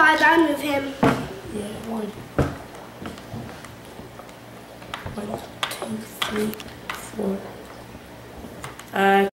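Small plastic game pieces click on a board.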